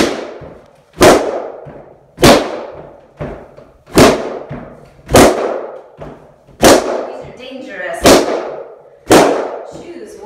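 Balloons burst with sharp bangs as they are stomped underfoot in a small echoing room.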